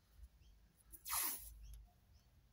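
Sticky tape rasps as it is pulled off a roll.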